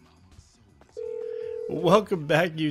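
A phone ringing tone sounds through a handset.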